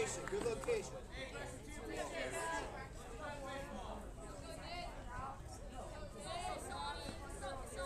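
Several adults and children call out and chatter nearby outdoors.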